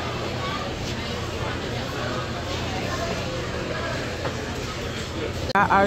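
Shoppers murmur and chatter nearby.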